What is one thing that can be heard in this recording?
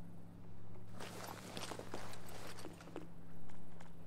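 A pistol rattles and clicks as it is drawn and handled.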